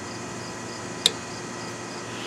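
A plastic wiper clip clicks into place.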